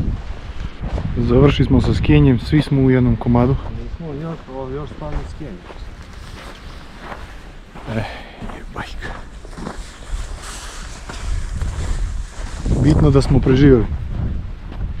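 A man speaks with animation close to the microphone.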